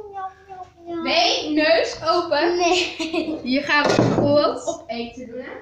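A young girl laughs loudly close by.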